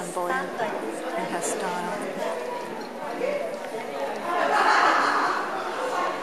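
A crowd of adults chatters and murmurs nearby.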